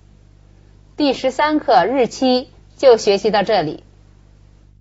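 A middle-aged woman reads out calmly into a microphone.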